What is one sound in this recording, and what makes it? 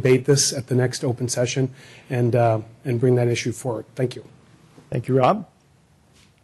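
A middle-aged man speaks forcefully into a microphone.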